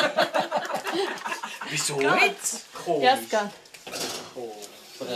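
Women talk and laugh excitedly close by.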